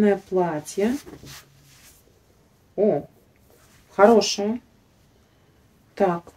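A young woman talks calmly close by, in short bursts.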